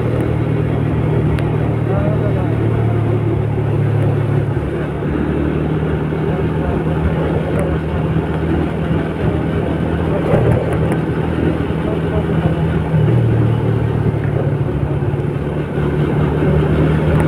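Wind rushes past while riding outdoors.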